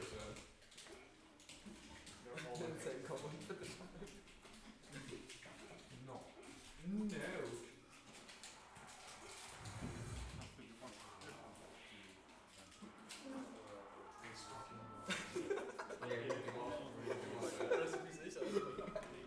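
Several young men chat and laugh nearby in a room with a slight echo.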